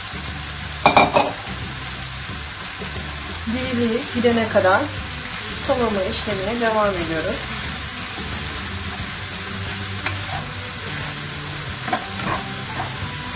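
Greens sizzle softly in a frying pan.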